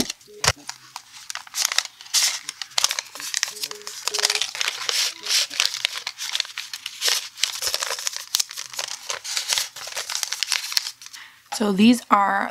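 Paper rustles and crinkles between fingers.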